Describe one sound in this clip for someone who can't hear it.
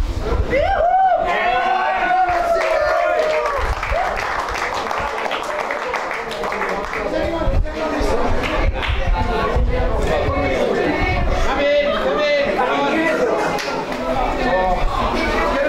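A group of teenage boys claps and stamps.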